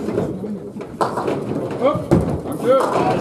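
Pins clatter as a ball strikes them.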